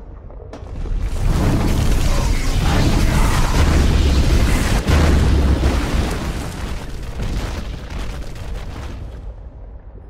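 A loud fiery blast roars and rumbles.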